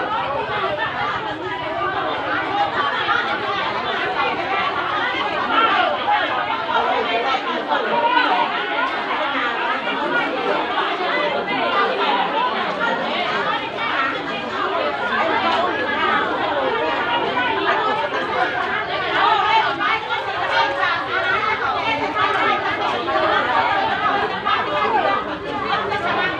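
A crowd of men and women talk and shout over one another close by, outdoors.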